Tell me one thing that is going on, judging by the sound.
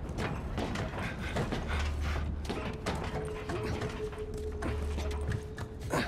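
A person climbs a metal ladder with clanking steps.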